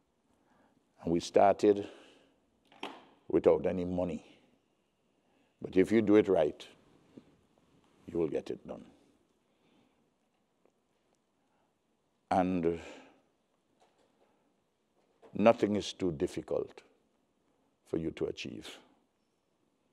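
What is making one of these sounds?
A man speaks through a microphone and loudspeakers in a large hall, pausing between phrases.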